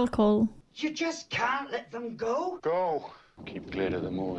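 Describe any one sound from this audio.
An older woman speaks.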